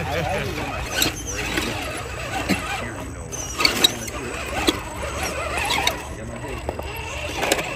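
Plastic tyres scrape and knock over rough rock.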